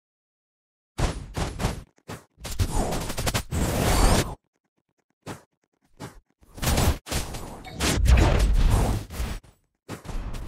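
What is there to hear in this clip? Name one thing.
Game sound effects of blows and energy blasts crash and whoosh in rapid bursts.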